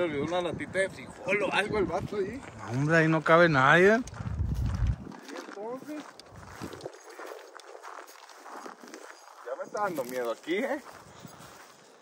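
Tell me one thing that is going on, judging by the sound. A young man talks calmly and casually, close by, outdoors.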